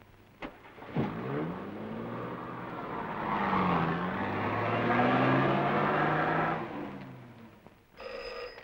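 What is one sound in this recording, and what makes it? A car engine revs as the car drives away into the distance.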